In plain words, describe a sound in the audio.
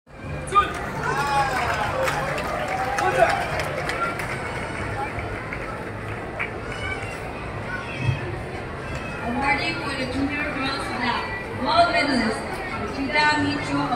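A large crowd of children and adults chatters and calls out in a big echoing hall.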